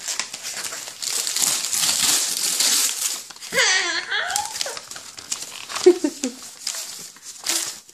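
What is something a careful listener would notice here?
Wrapping paper rustles and crinkles as it is torn open.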